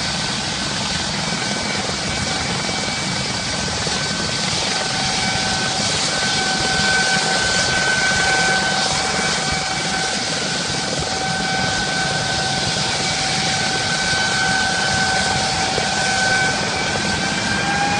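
A helicopter's engine whines steadily nearby.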